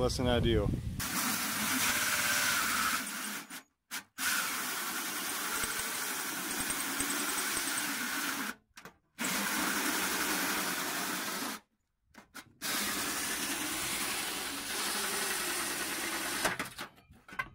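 A cordless drill whirs steadily as a hole saw grinds through sheet metal.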